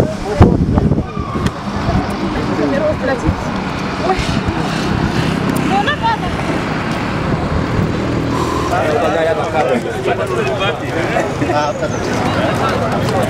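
A crowd of men chatter and call out nearby, outdoors.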